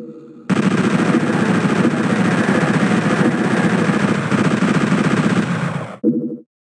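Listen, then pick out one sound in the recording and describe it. A gun fires rapid buzzing bursts of shots.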